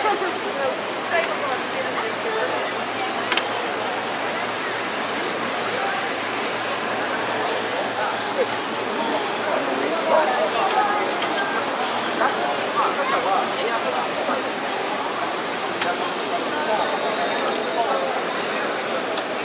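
Footsteps shuffle on a hard floor nearby.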